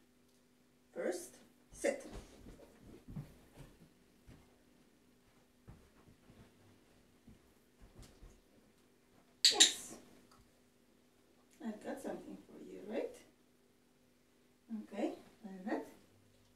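A young woman gives short, firm commands nearby.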